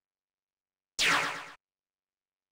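An explosion bursts with a short roar.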